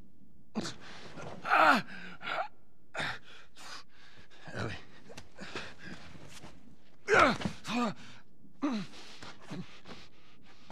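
A man groans and gasps in pain close by.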